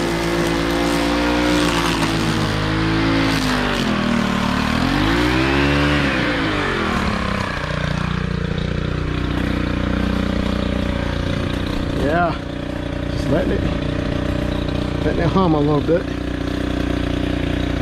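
A string trimmer line whips through grass.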